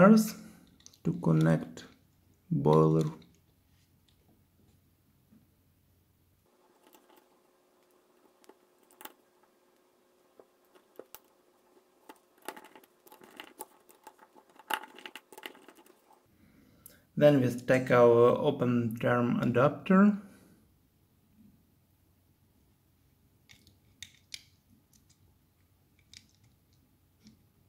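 Small plastic parts click and tap as they are fitted together.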